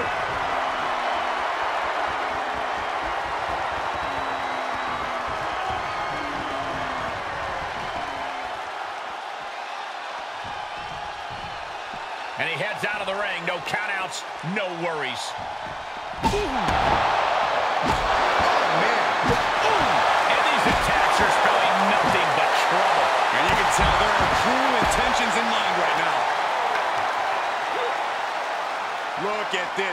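A large crowd cheers and roars, echoing through a big arena.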